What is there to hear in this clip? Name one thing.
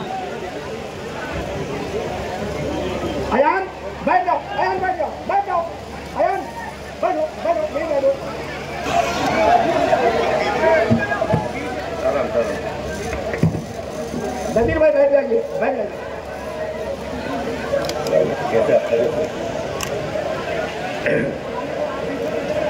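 A large crowd murmurs and chatters in a noisy open space.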